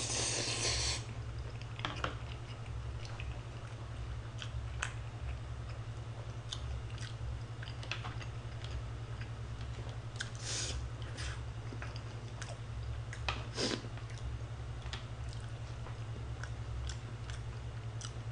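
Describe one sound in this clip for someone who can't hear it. A young man chews and smacks his lips close by.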